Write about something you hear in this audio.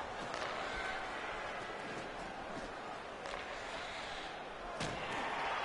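A puck clacks off a hockey stick.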